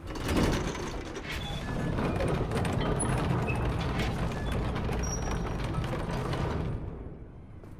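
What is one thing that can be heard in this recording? A heavy gate rumbles and grinds as it rises.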